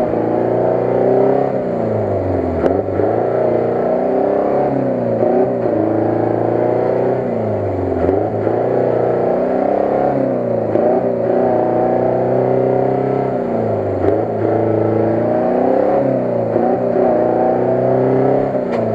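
Mud and water splash under spinning tyres.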